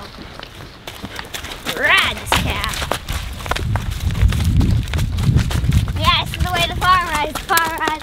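A cow's hooves thud on soft ground as it runs.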